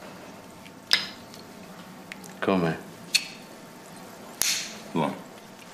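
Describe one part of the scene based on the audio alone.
Cutlery clinks against a plate.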